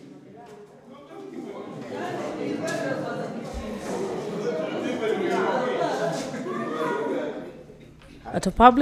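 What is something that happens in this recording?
A crowd of adults murmurs and chatters indistinctly.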